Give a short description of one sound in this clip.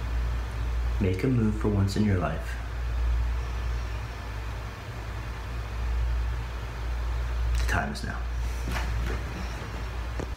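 A man speaks calmly and briefly, close to the microphone.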